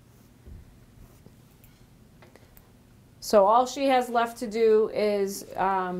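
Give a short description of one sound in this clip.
A paintbrush strokes softly on canvas.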